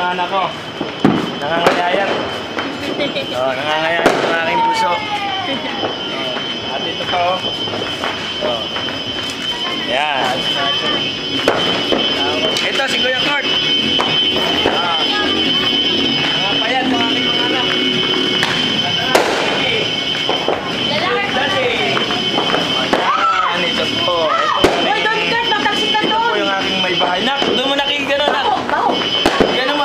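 Several people talk and laugh close by.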